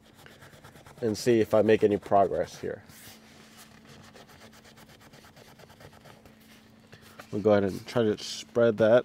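A cloth rubs softly over leather.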